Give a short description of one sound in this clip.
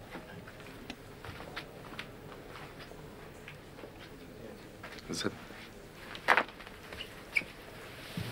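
A young man asks questions quietly.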